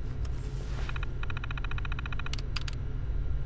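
A computer terminal beeps rapidly as text prints out.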